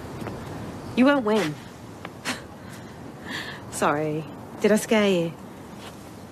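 A young woman speaks brightly and cheerfully nearby.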